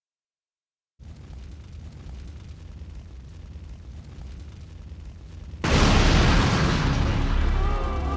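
Fire crackles and roars, growing suddenly louder.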